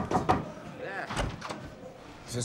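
A man opens a door with a click.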